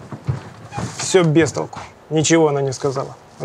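A man speaks in a firm voice.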